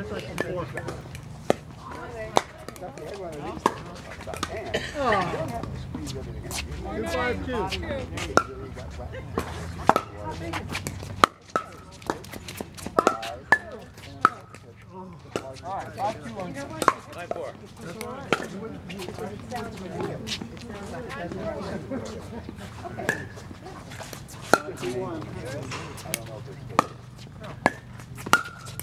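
Pickleball paddles strike a plastic ball with sharp hollow pops outdoors.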